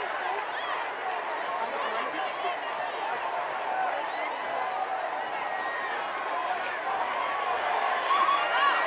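Players shout and call out across an open field.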